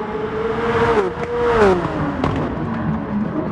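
A car engine's pitch drops sharply as a car speeds past close by.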